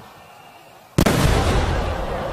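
A firework bursts with a loud boom.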